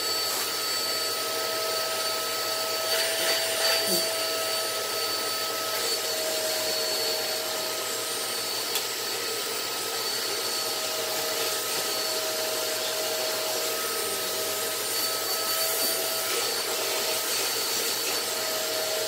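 A vacuum cleaner motor hums steadily nearby.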